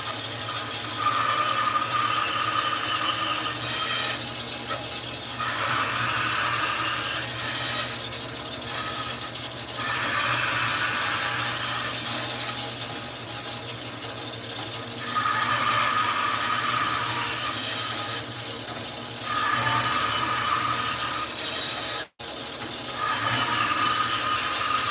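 A band saw blade cuts through wood in repeated bursts.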